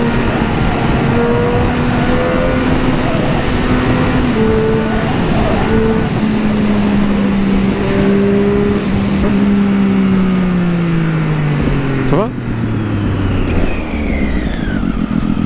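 A motorcycle engine hums steadily, then drops in pitch as the bike slows down.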